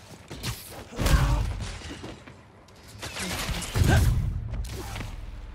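Heavy thuds of a body slamming onto the ground.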